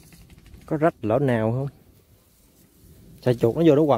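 A mesh net rustles against dry grass.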